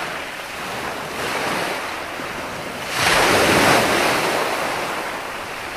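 Waves wash and break onto the shore, swelling and fading.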